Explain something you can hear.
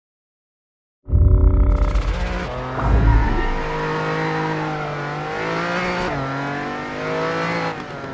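A car engine roars and revs up through the gears.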